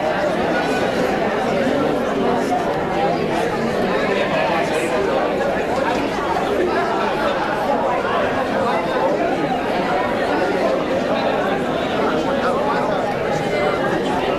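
A crowd of adults chatters loudly.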